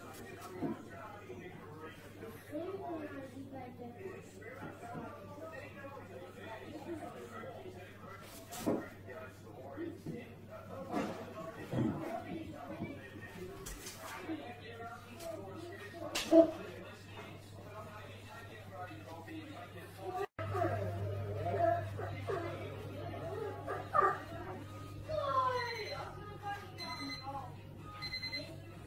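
A dog and a cat scuffle playfully on a hard floor.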